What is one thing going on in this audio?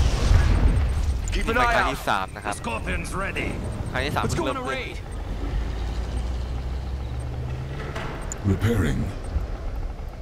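Heavy tanks rumble and hum steadily.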